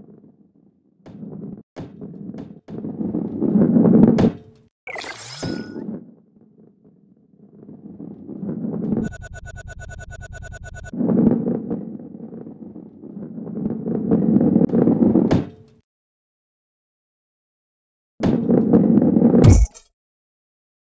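A ball rolls along a wooden track with a low rumble.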